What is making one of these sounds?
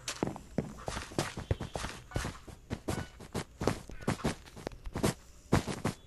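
Wool blocks are placed with quick, soft thuds, one after another.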